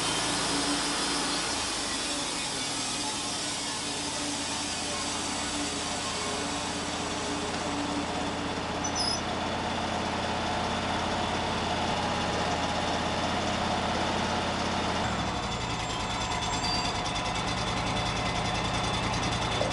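A band saw whines as it cuts through a log.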